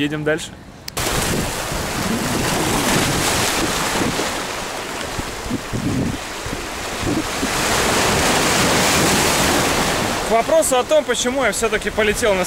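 Sea waves wash and splash over rocks.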